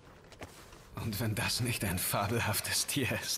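A young man speaks softly and warmly, close by.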